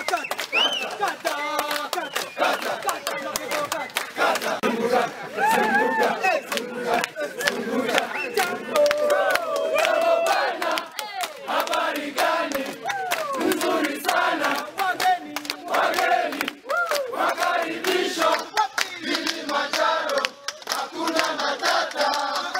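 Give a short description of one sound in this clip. A crowd of men and women sings together loudly outdoors.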